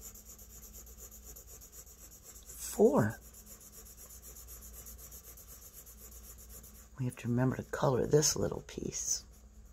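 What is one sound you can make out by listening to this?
A marker scribbles quickly on paper.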